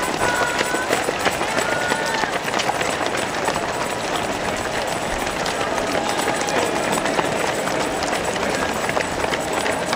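Many runners' shoes patter on pavement.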